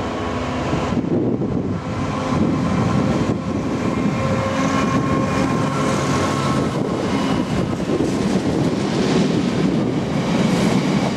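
Wagon wheels clatter and knock over the rail joints.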